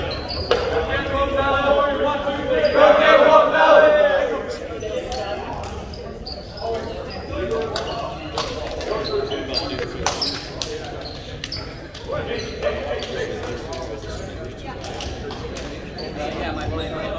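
Young men talk and shout together nearby.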